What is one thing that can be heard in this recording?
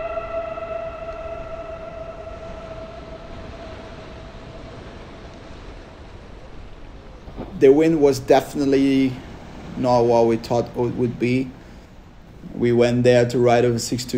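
Heavy surf crashes and roars steadily.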